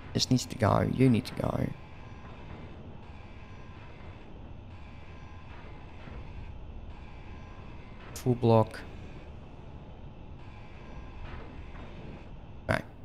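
A power grinder whirs steadily.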